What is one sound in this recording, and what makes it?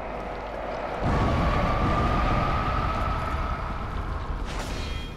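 A fireball bursts with a loud, rushing roar.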